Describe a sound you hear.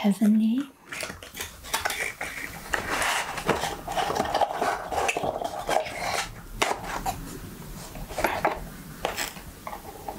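Cardboard rustles and scrapes as a box is slid open.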